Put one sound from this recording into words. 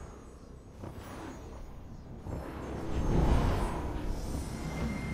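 Wind rushes past a gliding figure, swelling louder.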